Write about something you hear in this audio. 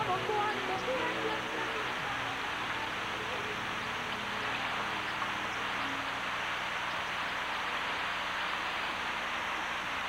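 Heavy rain pours steadily onto a hard surface outdoors.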